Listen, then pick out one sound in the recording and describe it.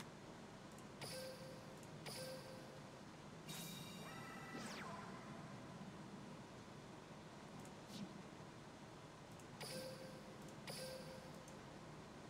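Short electronic chimes ring out now and then.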